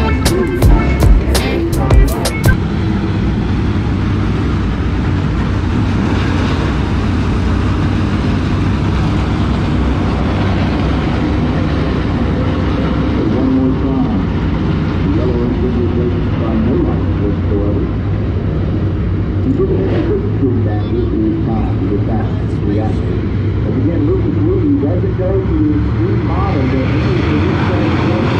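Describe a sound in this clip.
Race car engines roar loudly around a dirt track outdoors.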